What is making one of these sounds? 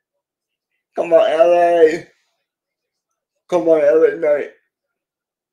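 A middle-aged man speaks calmly in short bursts over an online call.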